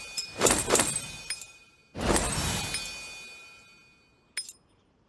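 A game menu plays bright whooshing reward chimes.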